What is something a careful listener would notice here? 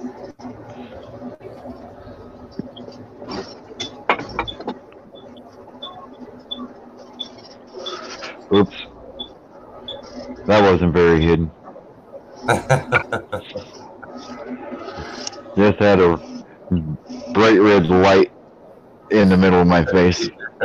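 A middle-aged man talks cheerfully over an online call.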